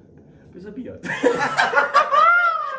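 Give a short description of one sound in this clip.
Young men laugh loudly and exclaim.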